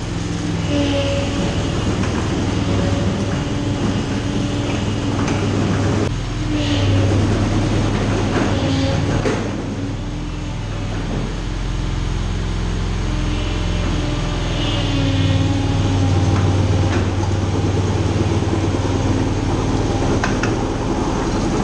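An engine hums and whines steadily in a large echoing hall.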